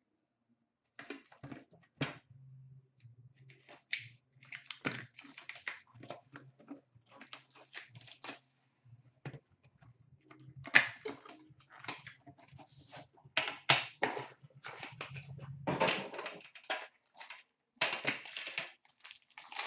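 Hands tear and rustle plastic wrapping on a box.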